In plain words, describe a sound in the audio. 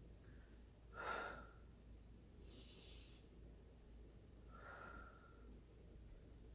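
A young woman sobs and sniffles softly close by.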